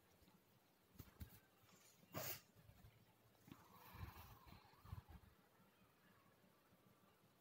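Hands mix dry crumbly dough in a plastic bowl with soft rustling and knocks.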